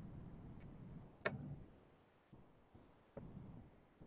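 Pliers click and snip a thin wire.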